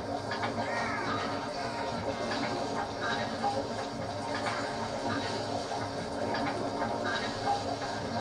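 A weapon swings and strikes with sharp metallic hits.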